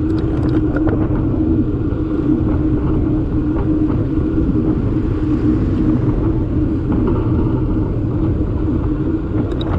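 Bicycle tyres hum steadily on smooth tarmac.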